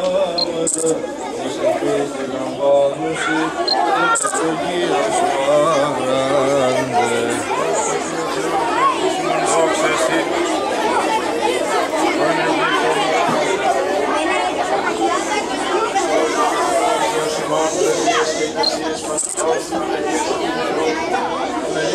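A crowd of children and adults murmurs and chatters.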